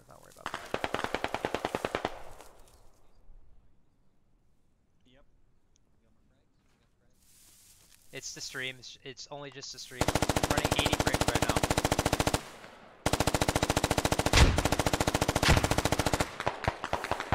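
A rifle fires in long rapid bursts.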